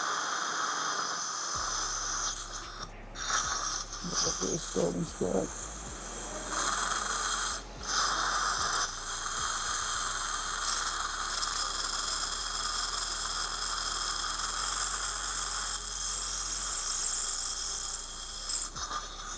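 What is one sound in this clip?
A dental drill whines steadily.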